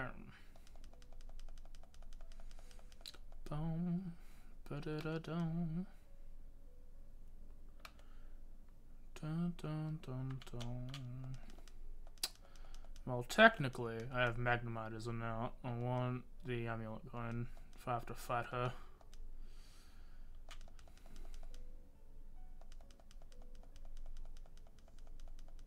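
Soft video game music plays in the background.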